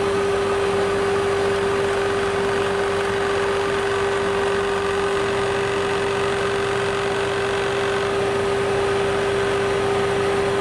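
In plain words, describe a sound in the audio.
A lathe spins with a steady high hum.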